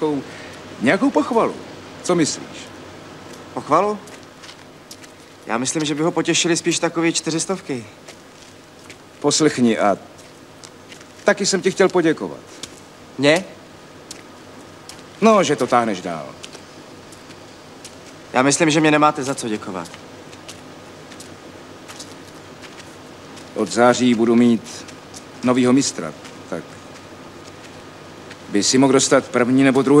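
A man speaks calmly nearby, in short phrases with pauses.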